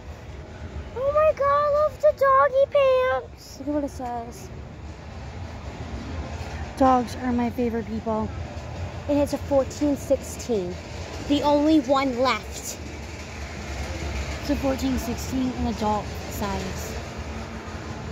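A young woman talks close by in short bursts.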